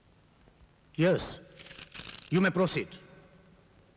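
An elderly man speaks firmly.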